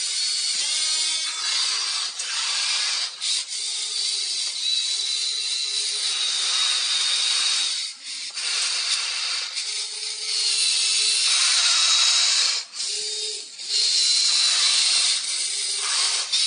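Sand scrapes and crunches as a loader bucket pushes into a pile.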